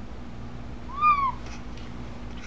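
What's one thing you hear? A cat meows briefly, close by.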